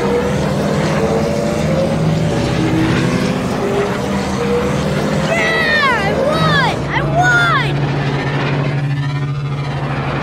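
A racing engine whines steadily at high speed.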